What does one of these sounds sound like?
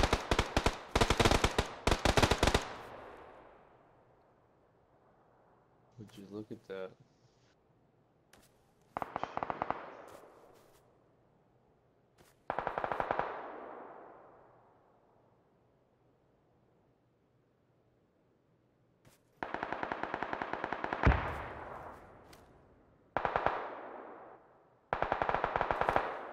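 Rifle fire cracks in rapid bursts, each trailing off in a long echo.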